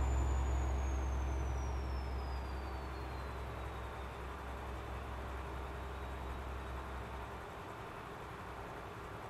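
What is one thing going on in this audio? Tyres roll along a road with a steady rushing noise.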